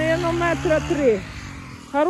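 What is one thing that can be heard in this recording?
Footsteps crunch on snowy grass.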